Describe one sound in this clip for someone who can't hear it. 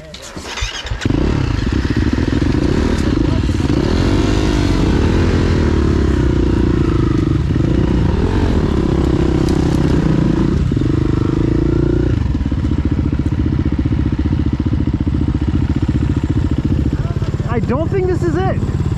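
A dirt bike engine roars loudly close by as it rides along.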